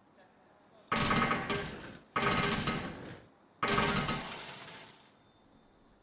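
A metal chain rattles as a hand pulls it.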